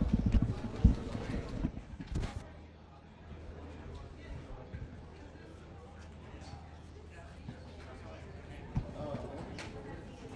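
Men and women murmur quietly in the background.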